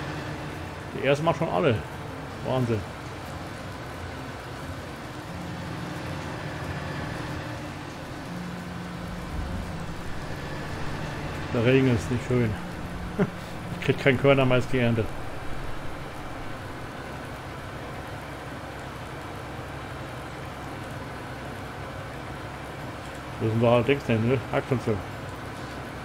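A man speaks casually into a nearby microphone in short bursts.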